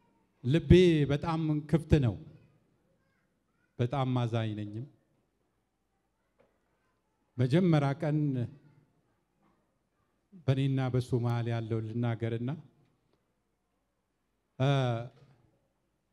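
A man speaks with feeling into a microphone, heard through loudspeakers in a large echoing hall.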